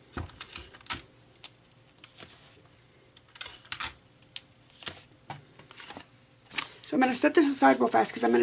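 Stiff card rustles and slides as hands handle it.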